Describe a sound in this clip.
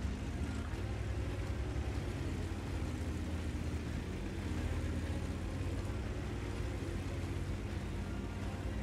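Tank tracks clatter over the ground.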